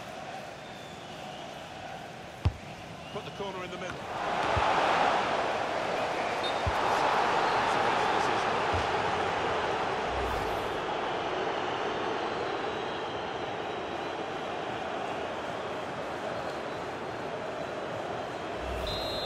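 A stadium crowd roars, swelling loudly and then settling to a steady din.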